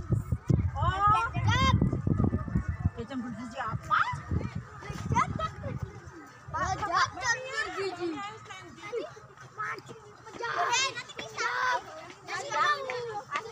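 Children chatter and call out excitedly nearby, outdoors.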